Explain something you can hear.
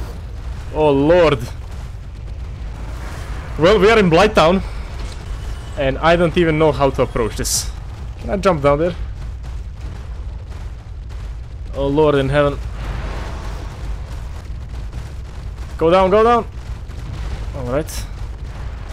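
A young man talks with animation into a headset microphone, in short bursts.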